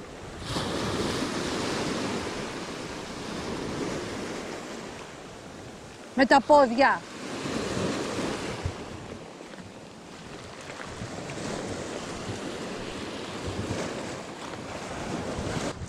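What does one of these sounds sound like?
Waves wash and break over a pebbly shore.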